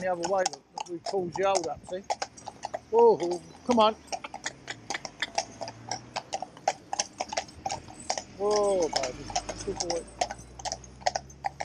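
Horse hooves clop steadily on a paved road.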